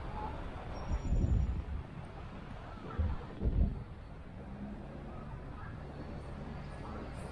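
A bus engine hums as it passes close by.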